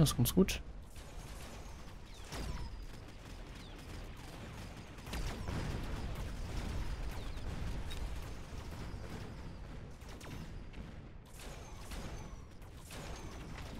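Explosions boom in quick succession.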